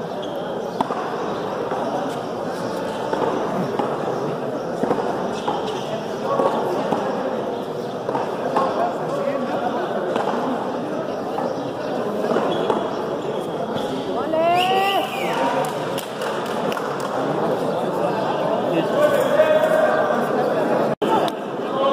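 A handball smacks against a wall in an echoing court.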